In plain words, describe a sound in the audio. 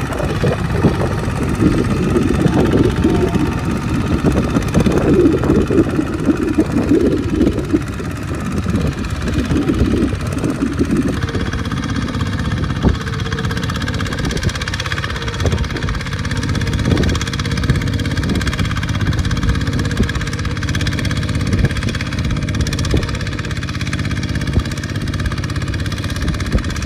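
A small diesel engine chugs loudly and steadily close by.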